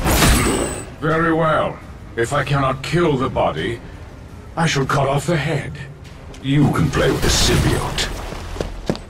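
A deep-voiced man speaks slowly and menacingly.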